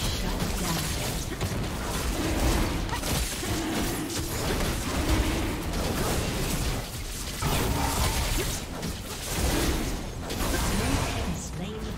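Magic spells crackle and blast in a fierce fight.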